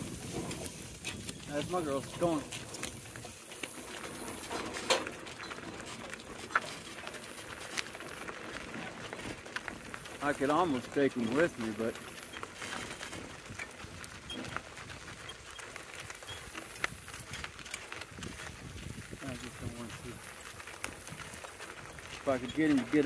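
Cart wheels crunch and rumble over gravel.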